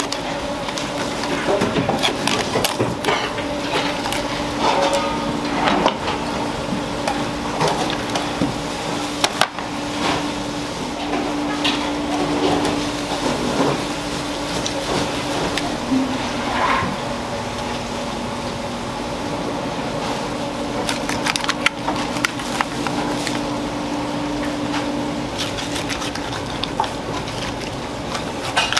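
A knife slices through raw fish.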